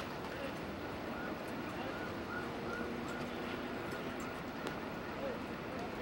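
A crowd murmurs quietly in the distance.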